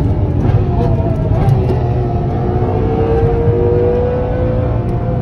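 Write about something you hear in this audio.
A sports car engine roars loudly with a steady drone.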